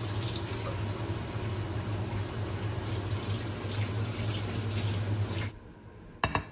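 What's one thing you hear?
Chopsticks stir and scrape through noodles in a pan.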